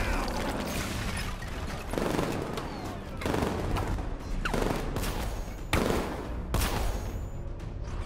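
Loud blasts and crashes boom one after another.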